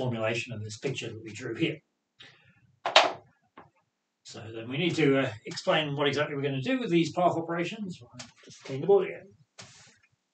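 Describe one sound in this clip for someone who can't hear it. A man speaks calmly and steadily, close to a microphone.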